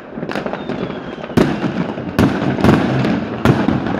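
A firework fountain hisses and crackles close by.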